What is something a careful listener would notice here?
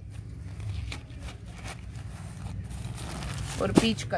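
Fabric rustles as it is handled.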